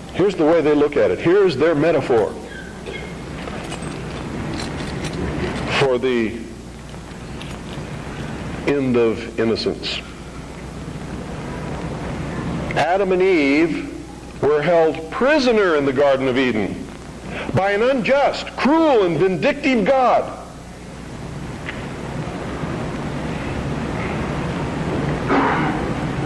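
A middle-aged man speaks with animation into a microphone, in bursts with pauses.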